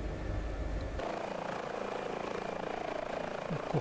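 A helicopter rotor whirs outside.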